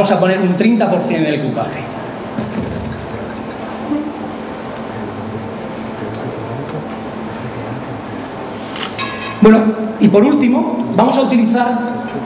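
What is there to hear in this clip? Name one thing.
A middle-aged man speaks with animation through a microphone in a large, echoing room.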